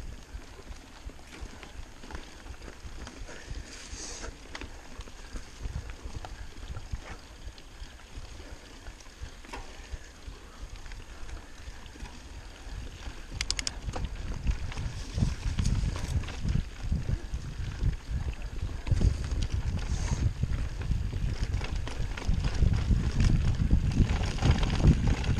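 Wind rumbles across the rider's microphone, growing stronger.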